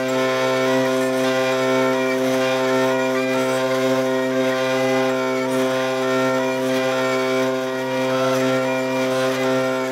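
A hurdy-gurdy plays a steady drone under a shifting melody.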